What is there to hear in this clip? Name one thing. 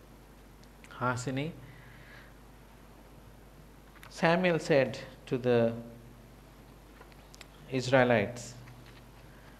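A man speaks calmly through a microphone in short phrases with pauses.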